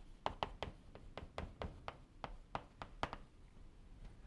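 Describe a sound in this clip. Chalk taps rapidly against a blackboard.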